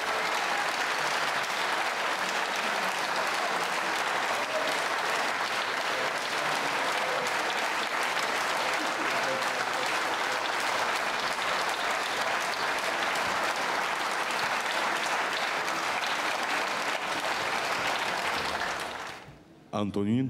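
A large audience applauds loudly outdoors.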